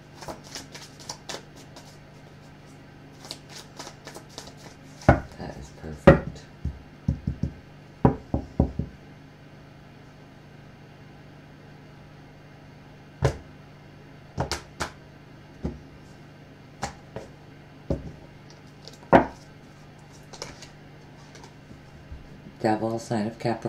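Cards tap and snap softly as a hand shuffles and lays them down.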